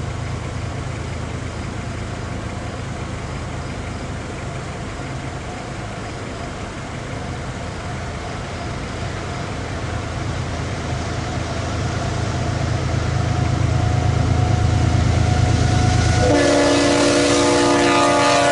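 A train's diesel engine rumbles as it approaches and grows louder.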